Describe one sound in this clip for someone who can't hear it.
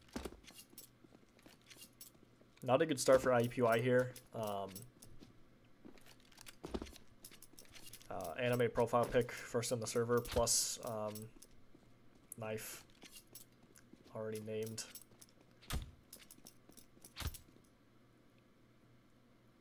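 Footsteps tap on stone floors.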